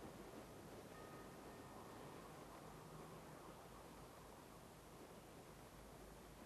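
Wind rushes steadily past a car gliding down under a parachute.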